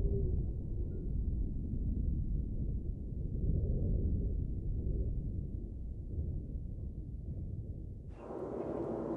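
Strong wind blows across open water.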